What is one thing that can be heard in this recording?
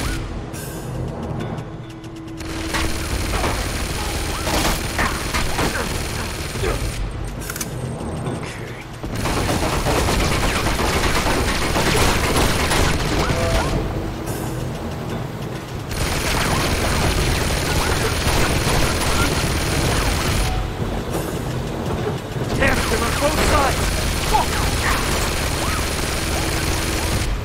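Gunshots crack and rattle in rapid bursts.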